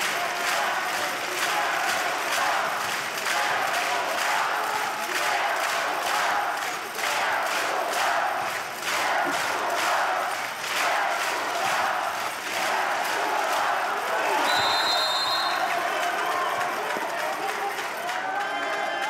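A large crowd claps in a steady rhythm in an echoing hall.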